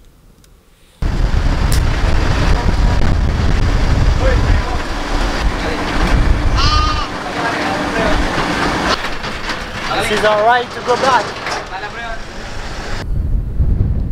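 Wind rumbles loudly past an open vehicle as it drives.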